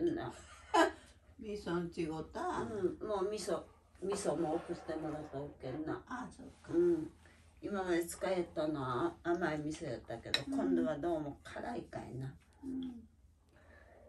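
An elderly woman talks with animation close by.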